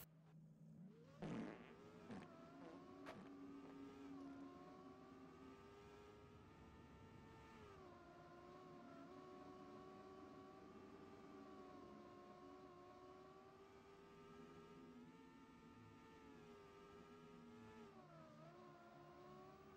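A racing car's engine whines steadily, rising and falling in pitch as it speeds along.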